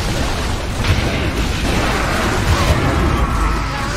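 Spells crackle and explode in a hectic fight.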